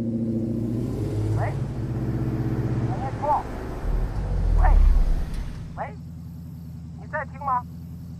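A young woman speaks anxiously into a phone, close by.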